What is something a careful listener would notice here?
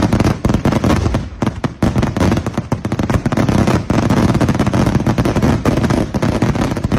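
Fireworks burst with rapid, booming and crackling explosions.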